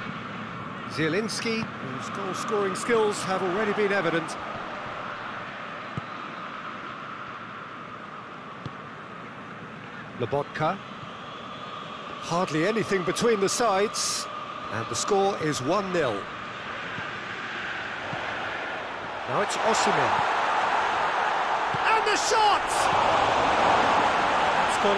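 A large crowd murmurs steadily in a stadium and swells into a loud roar.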